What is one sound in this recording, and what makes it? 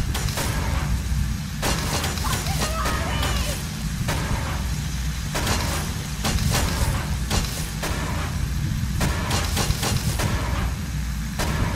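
A heavy stone block slides along and knocks to a stop.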